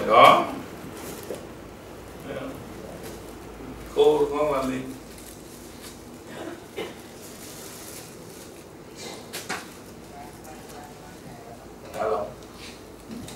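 A man speaks calmly nearby, giving short instructions.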